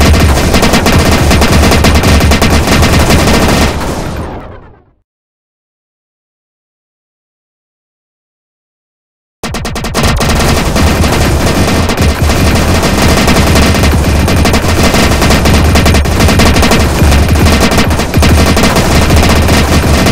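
Rapid laser shots and small explosions pop and crackle continuously.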